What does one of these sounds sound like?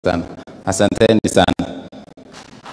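A man speaks into a microphone.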